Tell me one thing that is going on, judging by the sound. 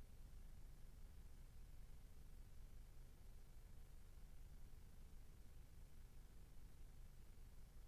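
Wind rumbles steadily across an open field.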